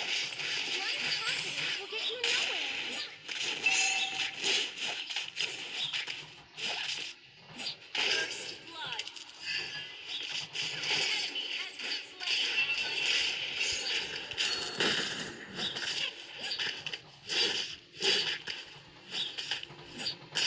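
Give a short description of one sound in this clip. Game sound effects of spells, hits and slashes ring out in quick bursts.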